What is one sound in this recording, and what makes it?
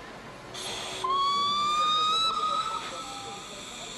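A train whistle blows loudly for a moment.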